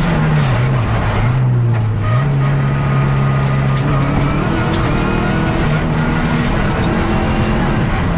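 A rally car engine roars loudly, revving up and down through gear changes.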